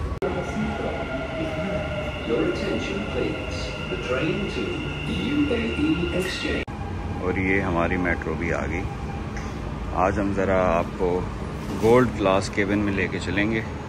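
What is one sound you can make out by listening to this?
A metro train rolls into a station and slows to a stop.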